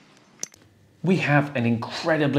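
A man talks calmly and with animation close to a microphone.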